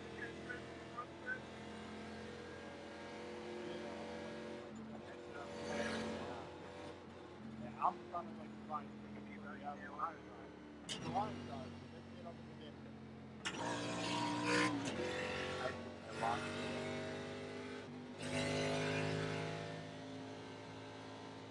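A race car engine drones steadily, rising and falling in pitch with speed.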